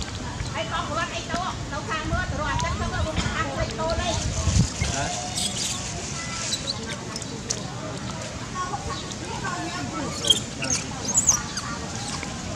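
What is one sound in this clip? Young macaques squeal and chirp.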